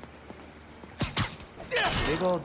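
Electricity crackles and zaps sharply.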